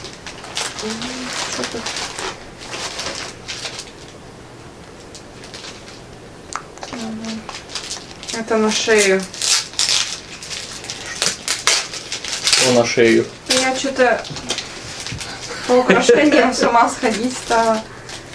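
Paper rustles and crinkles in a young woman's hands.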